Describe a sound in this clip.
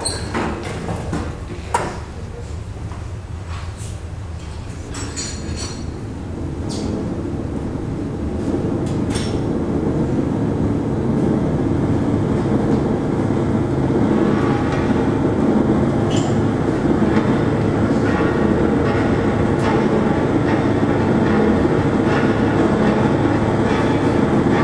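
Electronic music drones and swells through speakers, growing louder.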